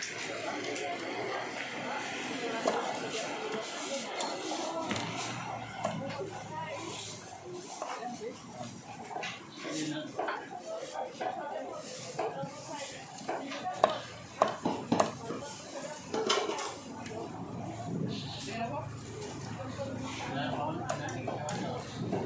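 A cleaver chops meat on a wooden block with sharp knocks.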